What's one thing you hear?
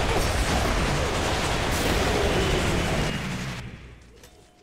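Flames roar loudly and then die away.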